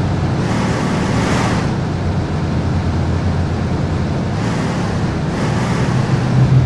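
A truck engine rumbles steadily as the truck drives along a road.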